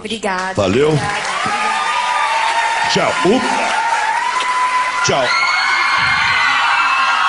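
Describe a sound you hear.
A young woman sings loudly into a microphone.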